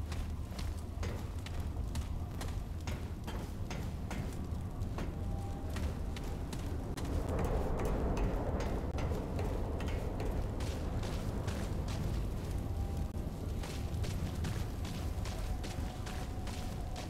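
Footsteps tread steadily on hard floors and metal stairs.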